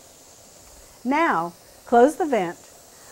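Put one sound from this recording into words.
A middle-aged woman speaks calmly and clearly close by.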